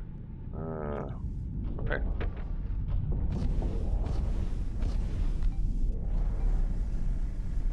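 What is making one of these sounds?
Laser weapons fire with a rumbling roar.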